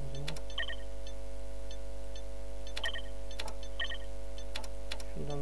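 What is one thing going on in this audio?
Game menu buttons click with short bright chimes.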